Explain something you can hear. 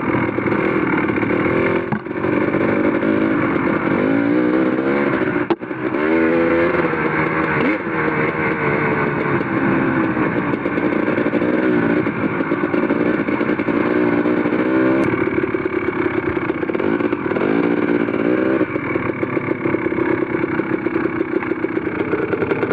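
Tyres crunch over loose gravel and dirt.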